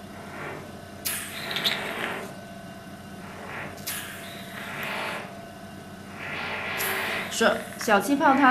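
A small suction device hisses in short bursts against skin.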